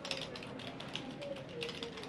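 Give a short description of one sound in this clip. A keyboard clicks with typing.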